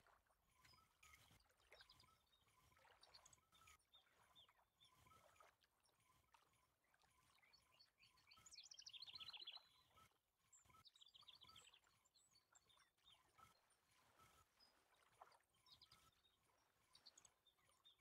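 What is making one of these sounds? A fishing reel whirs and clicks as it is wound in.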